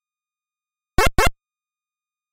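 A short electronic game chirp sounds twice in quick succession.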